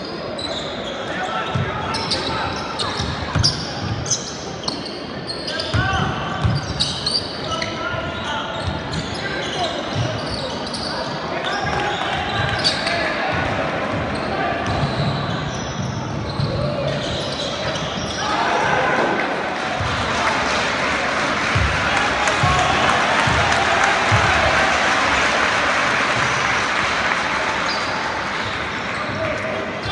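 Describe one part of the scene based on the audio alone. A basketball bounces with dull thuds on the court.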